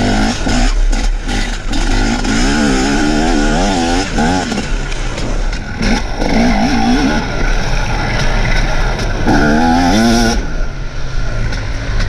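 A dirt bike engine revs hard, rising and falling close by.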